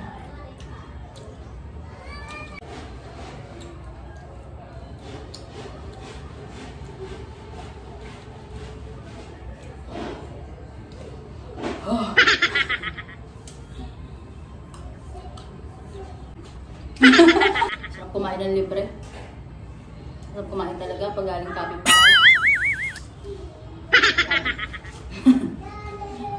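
Crisp fruit crunches as a young woman bites and chews.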